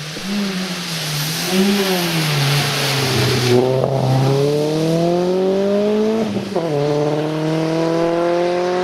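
A rally car engine revs hard, rising and falling as the gears change.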